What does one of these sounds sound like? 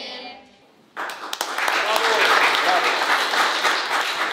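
A group of people claps in applause.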